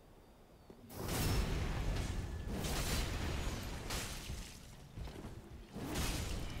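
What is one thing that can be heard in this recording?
Heavy weapon blows clash and crash loudly.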